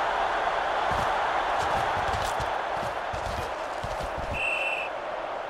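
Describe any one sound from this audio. Football players collide in a tackle with heavy thuds.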